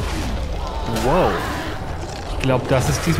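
A bear roars loudly in a large echoing hall.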